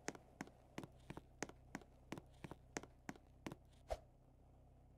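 Light footsteps tap quickly and evenly on a hard floor.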